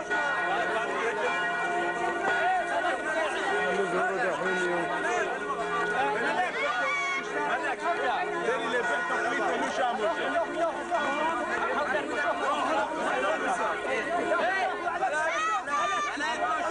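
A crowd of men chatter all around outdoors.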